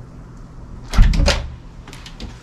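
A door unlatches and swings open.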